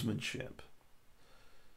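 A man speaks briefly into a computer microphone.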